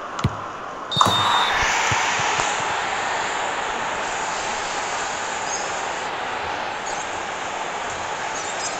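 A stadium crowd bursts into loud cheering and slowly settles.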